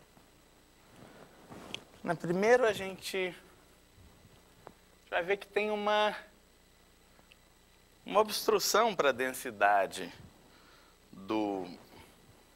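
A man lectures in a calm, steady voice, heard at a short distance.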